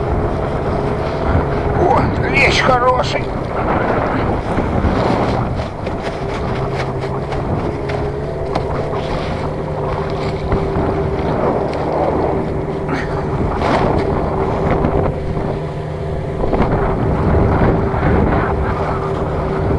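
A fishing net rustles as hands pull it into a boat.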